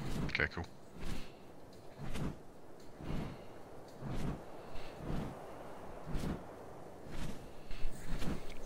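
Large wings flap in slow, regular whooshing beats.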